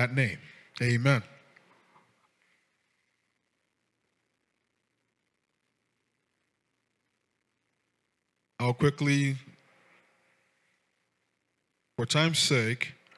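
A man speaks slowly and with feeling into a microphone, with long pauses between phrases.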